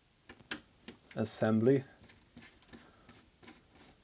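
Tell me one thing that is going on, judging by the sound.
A screwdriver turns a small screw with faint creaks.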